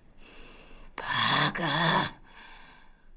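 A woman mutters angrily to herself close by.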